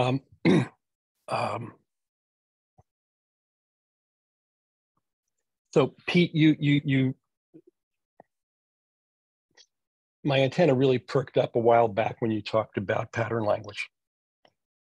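An older man speaks calmly over an online call, in short bursts with pauses.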